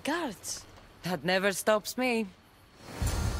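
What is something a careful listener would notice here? A woman answers calmly and firmly.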